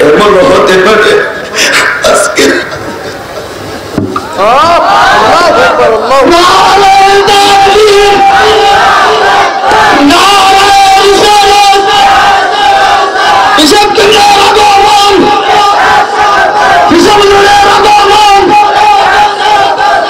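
A man sings a melodic chant loudly through a microphone, echoing over loudspeakers.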